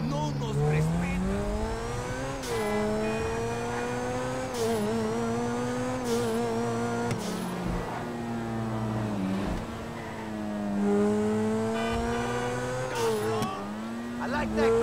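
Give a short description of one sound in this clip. A sports car engine roars and revs up through the gears.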